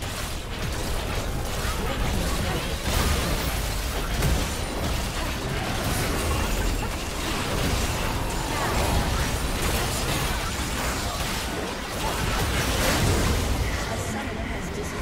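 Magic blasts, clashes and impacts crackle in a fast, chaotic battle.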